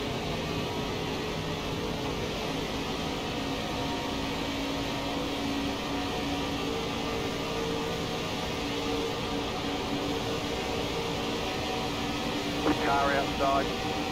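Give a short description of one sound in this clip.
A race car engine roars steadily at full throttle.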